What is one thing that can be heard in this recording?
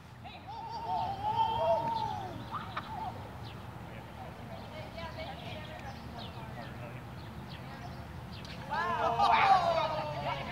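A group of young people shout and cheer excitedly outdoors.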